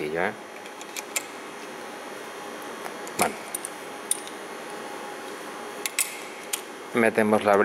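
Small metal parts click and clack as they are handled.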